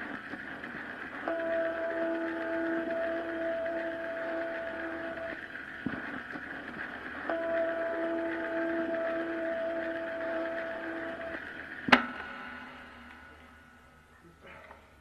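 Electronic music plays with sustained synth tones.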